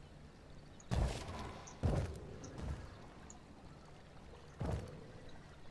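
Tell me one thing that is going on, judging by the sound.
Wooden walls thud into place one after another.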